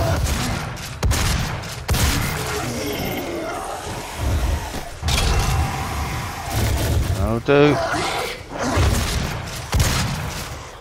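A shotgun fires in loud, booming blasts.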